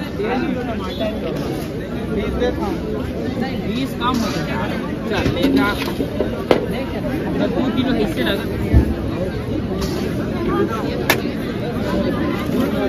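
A crowd of men and women talk over one another outdoors.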